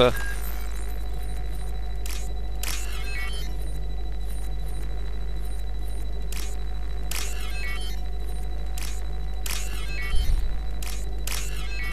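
Short electronic beeps and chirps sound in quick bursts.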